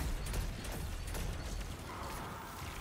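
Rapid gunfire and explosions crackle in a video game.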